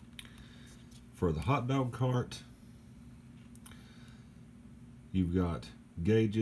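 Small plastic toy pieces click and rattle softly as they are handled.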